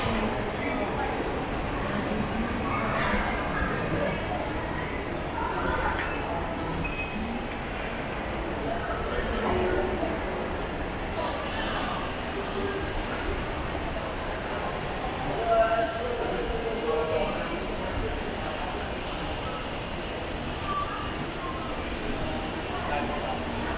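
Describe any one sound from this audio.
Voices murmur and chatter in a large echoing hall.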